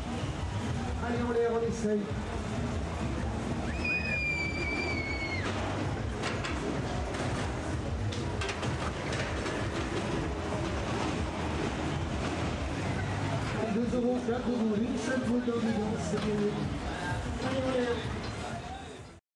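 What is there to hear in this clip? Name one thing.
A roller coaster rumbles and clatters along its track outdoors.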